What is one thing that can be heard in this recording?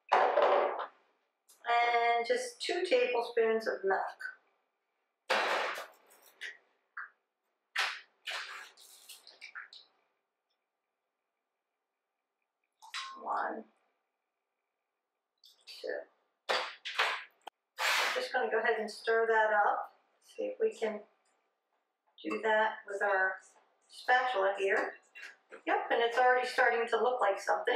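A woman talks calmly to the listener, close by.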